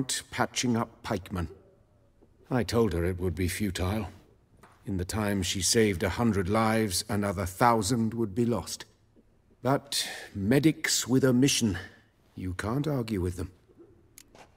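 A middle-aged man speaks calmly and at length, close by.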